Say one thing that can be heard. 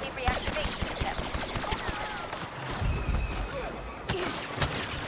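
Laser guns fire in rapid, sharp zapping bursts.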